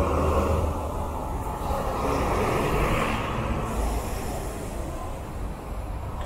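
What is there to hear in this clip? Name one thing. A bus engine rumbles as it pulls past close by.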